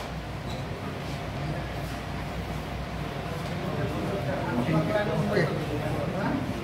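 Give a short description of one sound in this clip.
A group of men chatter nearby.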